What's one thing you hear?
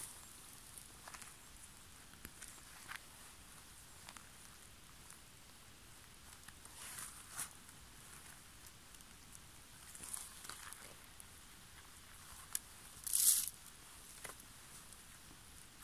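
Footsteps rustle through moss and dry grass.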